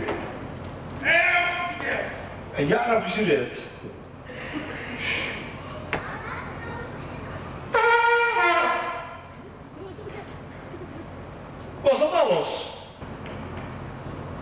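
A clown speaks loudly and comically.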